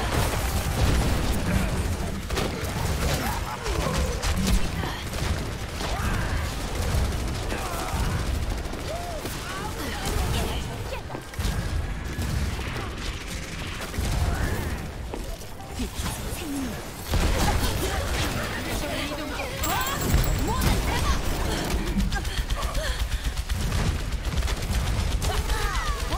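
Game explosions and impacts thump.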